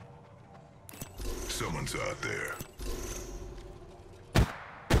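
Metal clicks and clacks as a rifle is handled and swapped.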